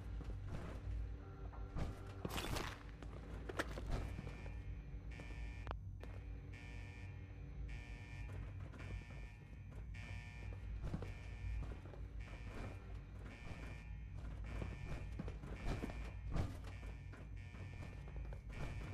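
Footsteps thud on a hard metal floor.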